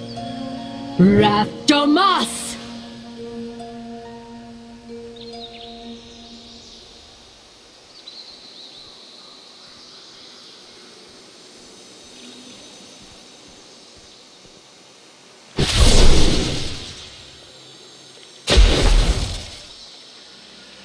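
A magic spell bursts with a bright, shimmering whoosh.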